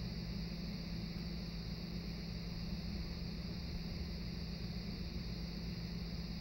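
A low, steady hum comes from a television's speakers.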